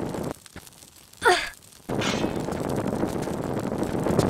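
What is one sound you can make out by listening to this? A heavy thud sounds as a body lands on stone.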